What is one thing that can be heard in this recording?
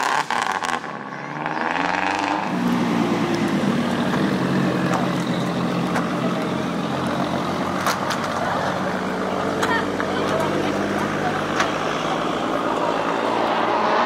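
A car engine revs hard and roars as the car drifts.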